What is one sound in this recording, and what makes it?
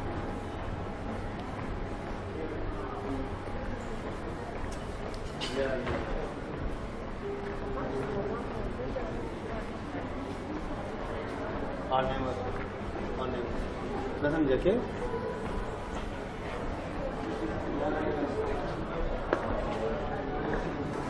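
People talk in the distance along a street.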